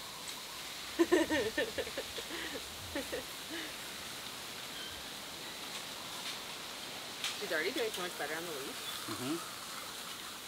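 A woman speaks briefly outdoors at a distance.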